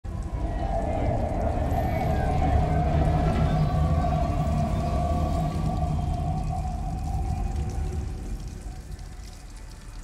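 A train rumbles past overhead with a droning hum and fades away.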